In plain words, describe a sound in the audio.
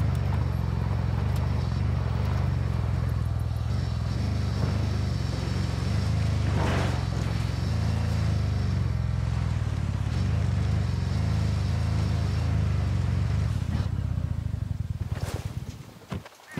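A heavy vehicle engine rumbles steadily as it drives.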